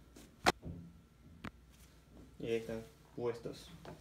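Shoes step on a hard floor.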